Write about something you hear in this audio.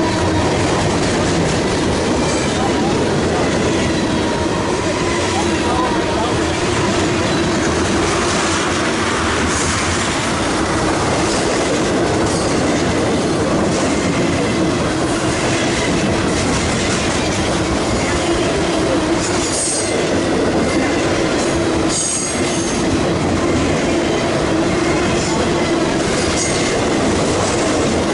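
A long freight train rumbles past close by, its wheels clattering on the rails.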